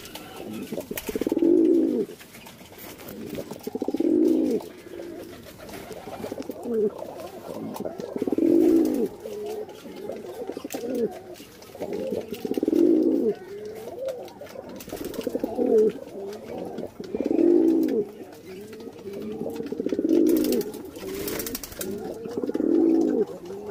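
Pigeons coo in deep, rolling bursts over and over.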